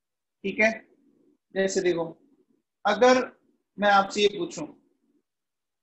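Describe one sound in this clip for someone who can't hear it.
An adult man speaks calmly through a close microphone, in short bursts.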